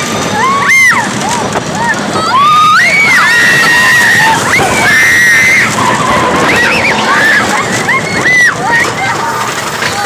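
Riders scream loudly close by.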